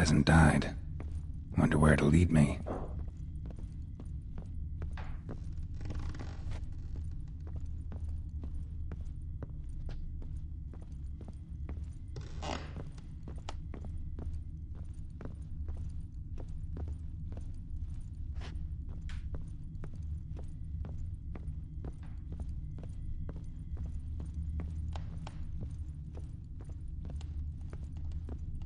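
Footsteps thud steadily on a wooden floor.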